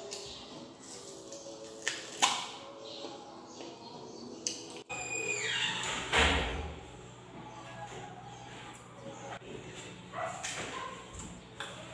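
A young woman bites into crisp fruit.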